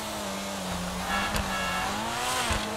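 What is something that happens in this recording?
A sports car exhaust pops with backfires.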